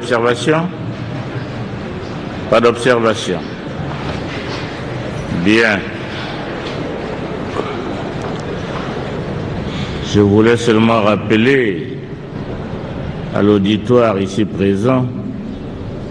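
A man speaks loudly into a microphone in short bursts, echoing in a large hall.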